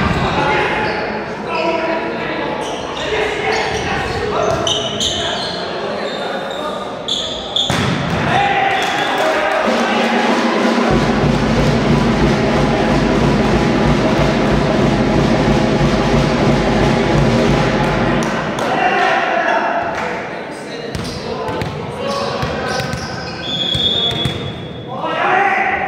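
A volleyball is struck hard in a large echoing hall.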